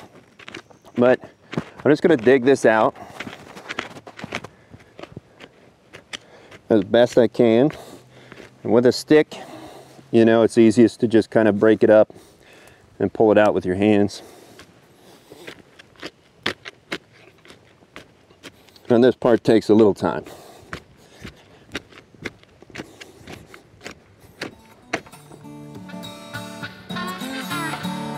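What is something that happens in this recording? A wooden stick digs and scrapes into soil.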